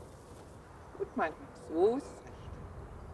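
A woman calls out a short command from a short distance outdoors.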